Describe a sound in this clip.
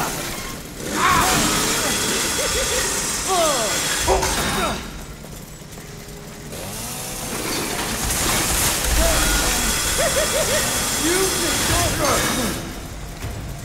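Metal chainsaw blades clash and grind with harsh scraping.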